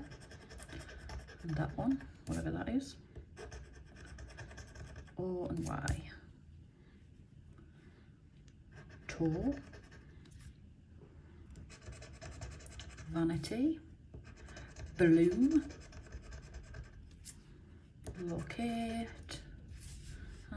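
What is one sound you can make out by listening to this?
A metal tool scratches rapidly across a card's surface.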